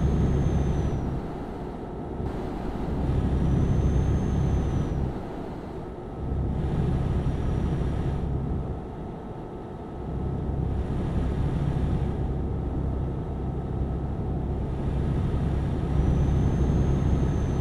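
A truck engine rumbles steadily, rising and falling as it accelerates and eases off.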